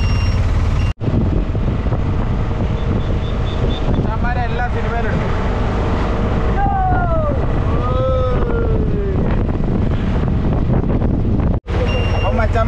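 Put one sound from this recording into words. A small motor rickshaw engine rumbles steadily.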